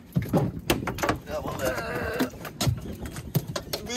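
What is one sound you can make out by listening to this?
A fish flops and thumps on a boat deck.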